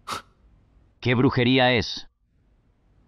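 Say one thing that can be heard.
An older man speaks with animation.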